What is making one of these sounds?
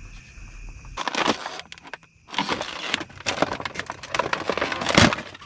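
Plastic items rustle and clatter as they are moved about.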